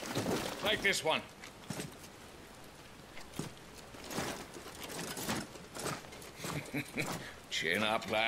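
Metal armour clanks as armoured men move.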